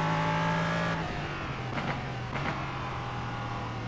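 A racing car engine drops in pitch as the car slows.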